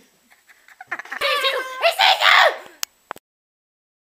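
A young woman shrieks close by.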